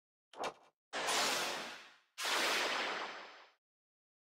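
A magical chime sparkles and fades.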